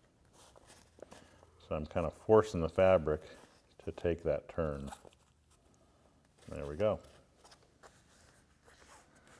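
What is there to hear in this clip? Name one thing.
Fabric rustles softly as it is folded and smoothed.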